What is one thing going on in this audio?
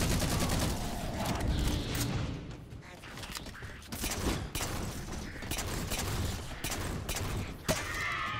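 Gunfire bursts out in quick volleys.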